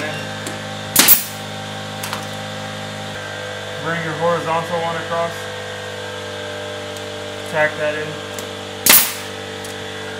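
A nail gun fires with a sharp, loud snap.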